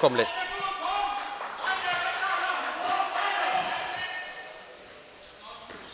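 A handball bounces on a hard floor in an echoing hall.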